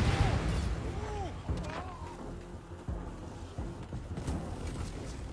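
Explosions boom with low rumbles.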